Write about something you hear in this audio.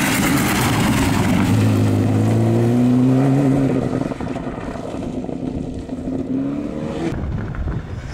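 A rally car engine roars past at high revs and fades into the distance.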